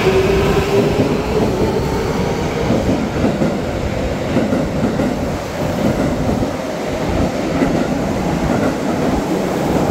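A subway train rumbles past close by along the platform.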